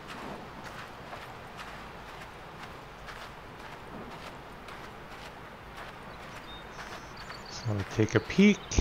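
Footsteps swish through tall grass at a steady walking pace.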